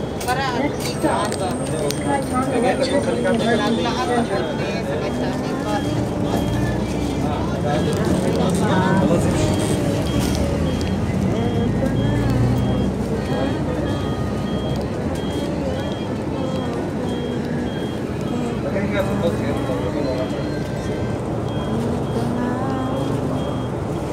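A bus engine rumbles steadily while the bus drives.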